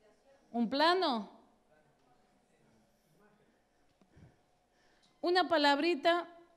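A middle-aged woman speaks with animation into a microphone in short bursts.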